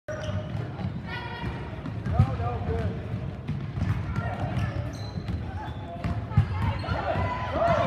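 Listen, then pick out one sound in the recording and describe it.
A ball bounces on a hardwood floor in a large echoing gym.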